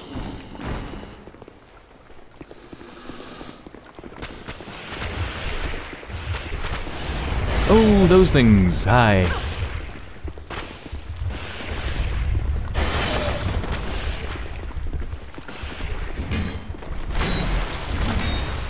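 Heavy footsteps crunch on gravelly ground.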